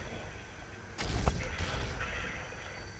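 A grenade explodes with a sharp bang.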